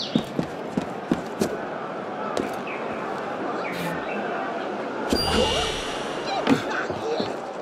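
Footsteps clatter quickly across roof tiles.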